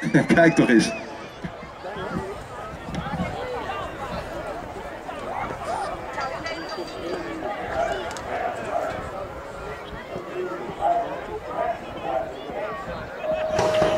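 Young riders and onlookers murmur and chatter outdoors.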